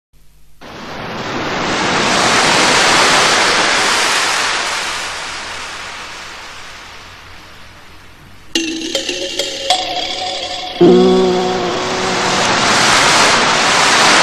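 Waves wash gently against the shore.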